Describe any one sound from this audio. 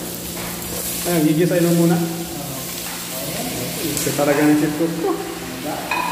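Raw meat slides from a pan into a metal pot.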